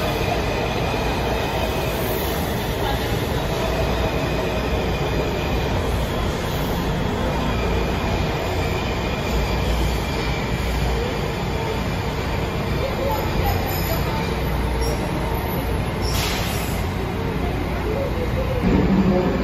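A subway train rumbles and rattles steadily past along the tracks in an echoing underground station.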